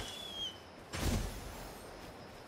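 A gust of air whooshes.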